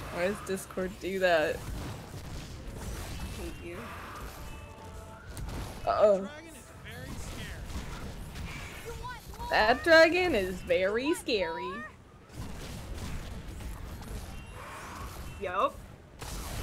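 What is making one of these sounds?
Dragons roar and screech in a fight.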